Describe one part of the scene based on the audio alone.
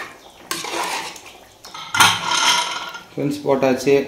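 A metal lid clanks onto a pot.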